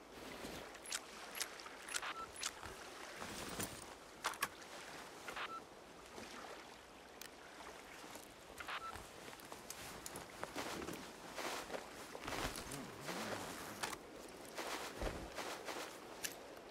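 Short interface clicks and item shuffling sounds come as items are moved around.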